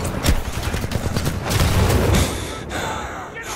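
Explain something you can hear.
Spaceship engines rumble deeply.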